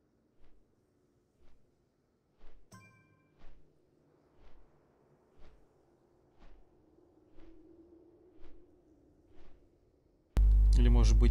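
A magic spell pulses with a soft whoosh about once a second.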